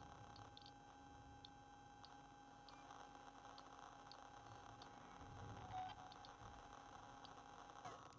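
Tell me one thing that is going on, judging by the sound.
Soft electronic clicks sound as menu choices change.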